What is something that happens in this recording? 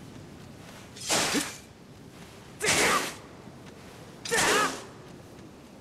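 A sword swishes and slices through grass in short bursts.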